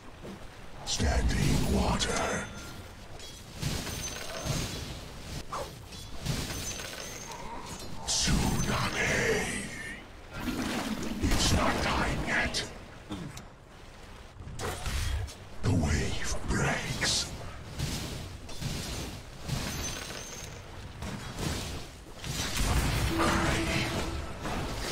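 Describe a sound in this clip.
Clashing fight effects and spell bursts sound in quick bursts.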